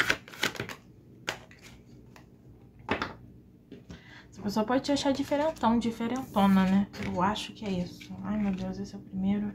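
Playing cards are shuffled and laid down on a table with soft slaps.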